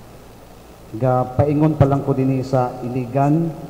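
A man speaks into a microphone, echoing in a large hall.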